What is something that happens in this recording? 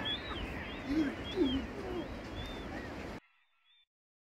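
Waves lap gently against the shore, outdoors in light wind.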